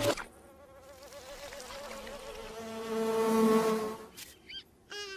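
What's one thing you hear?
A cartoon lizard wails in a long, wavering cry.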